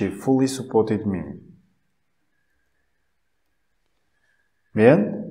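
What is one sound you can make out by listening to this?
A man speaks calmly and clearly into a close microphone, pausing between phrases.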